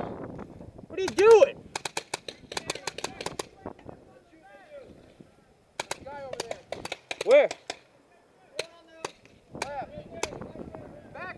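A paintball marker fires rapid popping shots close by.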